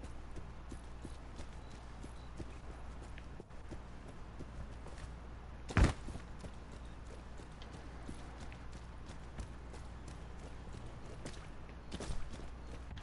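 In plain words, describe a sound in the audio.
Footsteps patter steadily on hard ground.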